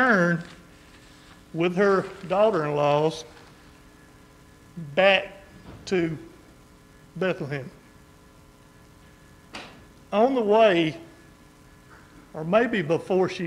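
An older man speaks slowly and calmly through a microphone, with pauses, in a large room with slight echo.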